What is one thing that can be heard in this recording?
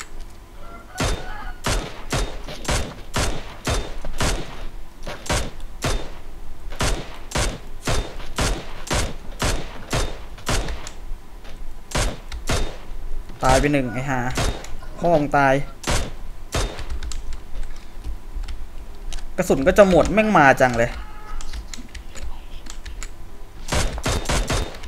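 A rifle fires shot after shot in quick bursts.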